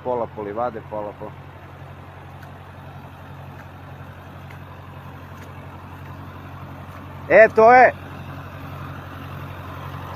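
A tractor engine rumbles nearby.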